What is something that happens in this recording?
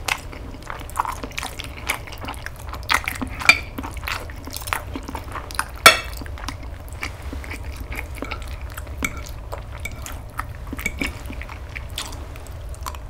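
A fork and knife scrape and clink against a plate.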